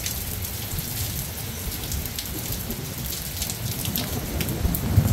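Steady rain falls outdoors.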